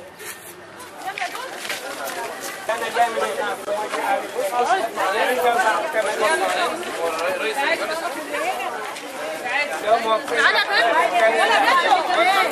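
A crowd of women chatters with animation close by.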